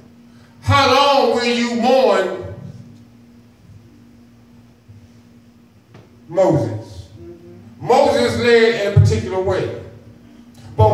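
A man preaches with animation through a microphone and loudspeakers in an echoing room.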